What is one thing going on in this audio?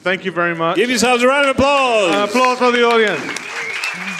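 A man cheers loudly and excitedly.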